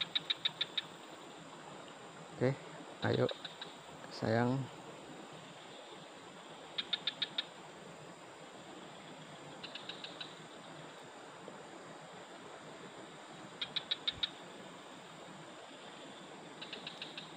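A fishing reel whirs and clicks as its handle turns.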